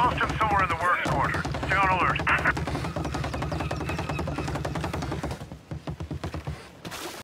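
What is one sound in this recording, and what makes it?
Footsteps run quickly across wooden boards.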